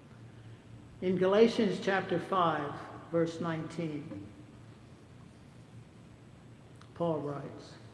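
An elderly man speaks calmly into a microphone in a large echoing hall.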